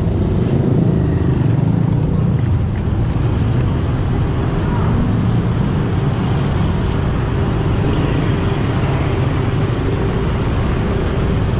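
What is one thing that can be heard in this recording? Wind rumbles across the microphone while riding.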